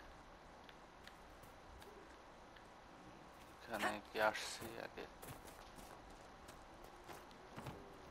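Quick footsteps patter over ground and wooden steps.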